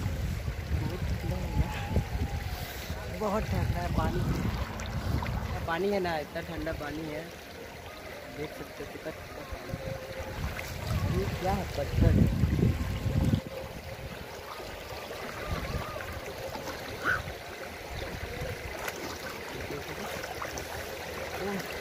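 A young man talks and laughs close by, outdoors.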